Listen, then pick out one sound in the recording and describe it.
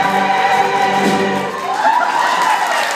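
A choir sings together.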